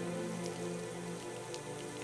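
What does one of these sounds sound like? A woman sobs quietly.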